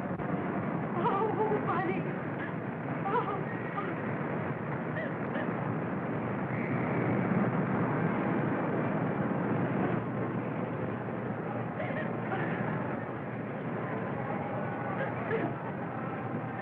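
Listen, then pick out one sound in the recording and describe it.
A young woman speaks with emotion, heard through an old, hissy film soundtrack.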